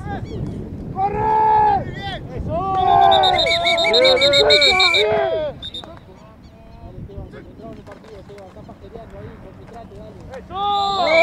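Young men shout loudly across an open field.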